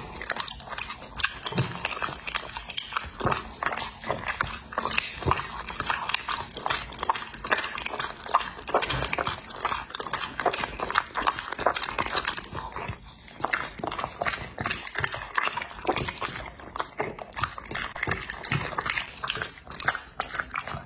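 A dog chews and tears at meat with wet, smacking bites, close up.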